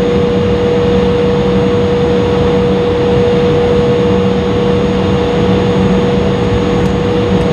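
Jet engines hum and whine steadily inside an airliner cabin.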